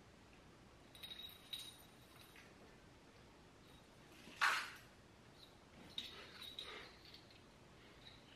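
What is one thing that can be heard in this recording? Cables and small gear clatter and rustle on a hard floor.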